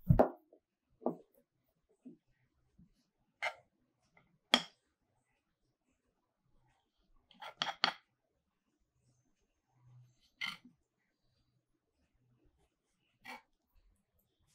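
A knife taps and scrapes on a wooden board while cutting dough.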